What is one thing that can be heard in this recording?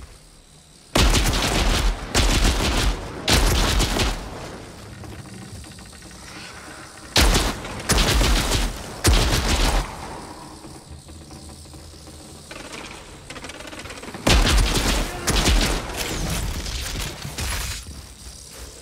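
Loud rifle shots bang in bursts, with a ringing echo.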